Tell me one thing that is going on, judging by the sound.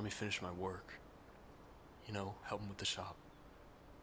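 A young man answers in a low voice nearby.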